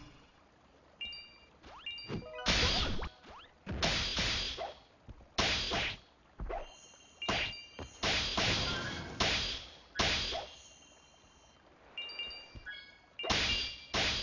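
Short chiming game tones ring out.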